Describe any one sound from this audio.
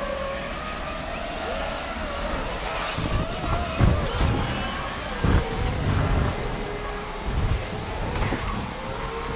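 A race car engine roars and whines as it speeds along.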